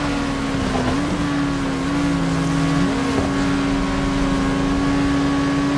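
Another racing car engine drones nearby.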